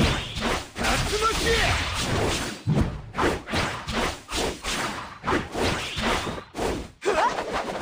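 Punches and blasts thud and crash in quick bursts.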